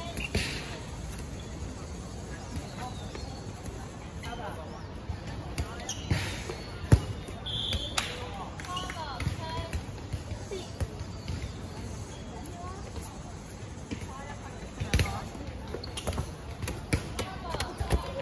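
Young women shout and call out to each other during a game.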